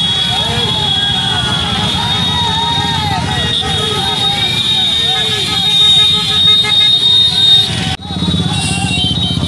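Motorcycle engines rumble and putter as a procession rides slowly past.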